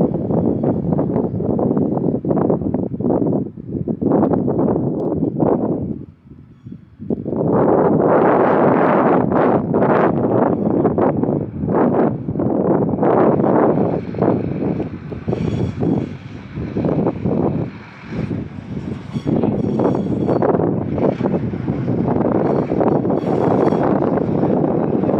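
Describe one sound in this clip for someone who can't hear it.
A diesel locomotive rumbles as it slowly approaches.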